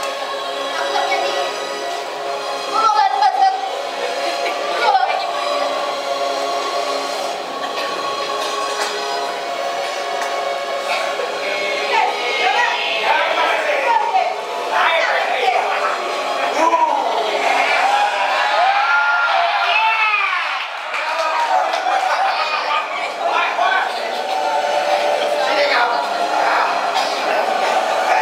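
Music plays in a large echoing hall.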